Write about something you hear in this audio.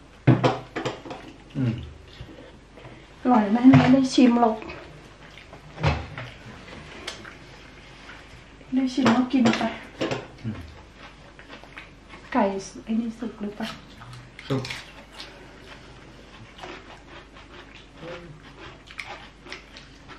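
Food crunches and squelches as two men chew and bite.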